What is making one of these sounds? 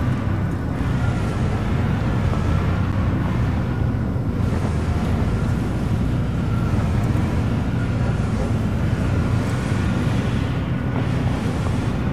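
A spacecraft engine rumbles steadily with a deep, even drone.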